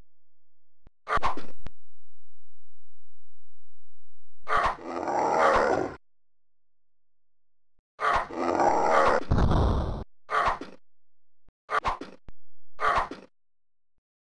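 A sword swishes and clashes in a game.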